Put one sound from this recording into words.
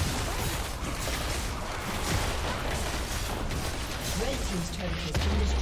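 Game spell blasts and weapon hits clash in a busy, noisy battle.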